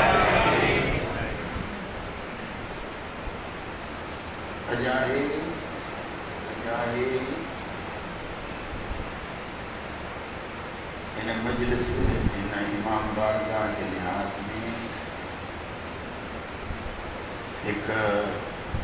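A man speaks with emotion through a microphone, in short phrases with long pauses.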